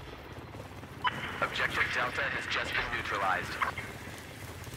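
A young man speaks into a headset microphone with animation.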